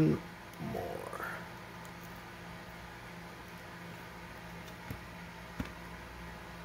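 A small plastic part clicks as a pry tool works it loose.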